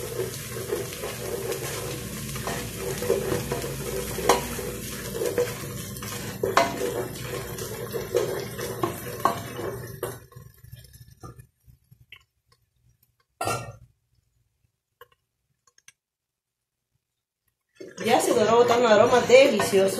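A wooden spoon scrapes and stirs food in a metal pot.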